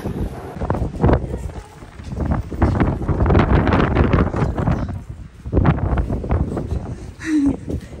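Wind buffets a microphone outdoors.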